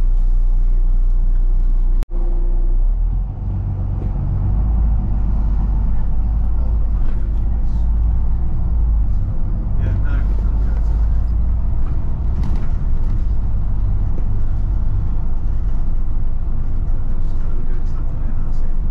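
Wind roars against the microphone outdoors.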